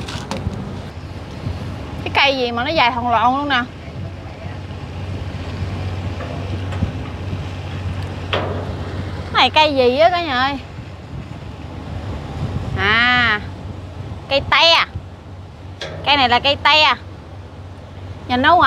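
Water rushes past a boat's hull.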